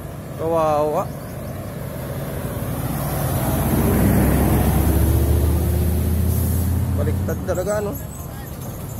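A heavy truck engine rumbles as it drives past close by.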